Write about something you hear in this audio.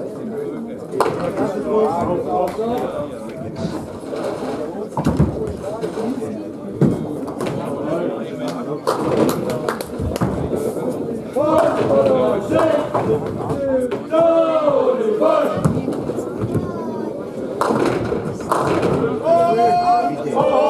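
Bowling pins clatter as a ball strikes them.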